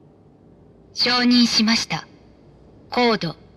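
A young woman speaks briefly into a phone.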